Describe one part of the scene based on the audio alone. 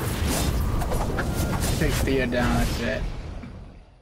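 Game battle effects clash, whoosh and crackle loudly.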